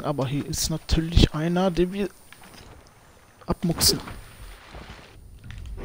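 Water splashes as someone wades through a lake.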